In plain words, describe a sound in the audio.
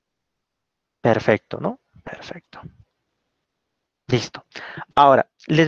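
A young man speaks calmly through an online call microphone.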